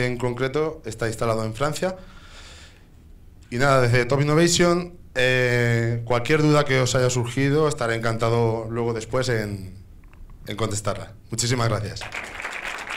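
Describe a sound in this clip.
A young man speaks with animation through a microphone in a large hall.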